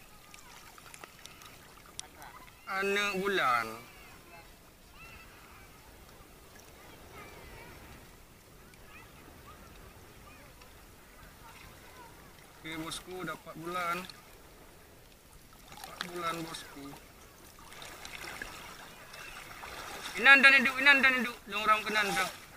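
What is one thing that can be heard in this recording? Water laps gently nearby.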